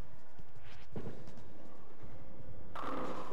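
A bowling ball rolls down a wooden lane with a low rumble.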